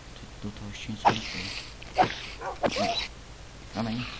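A sword strikes a large spider several times with quick thuds.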